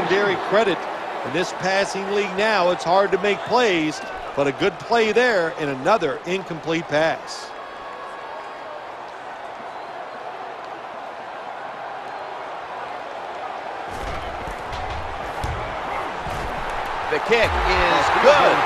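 A stadium crowd roars steadily and swells louder near the end.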